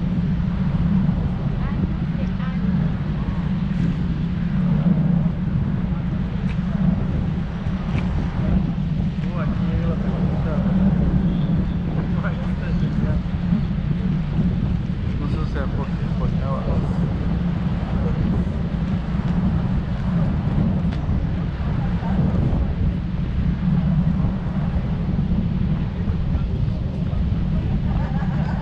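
Wind blows across an open deck.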